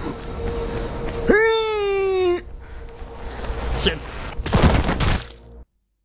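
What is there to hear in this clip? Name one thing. Wind rushes past during a long fall.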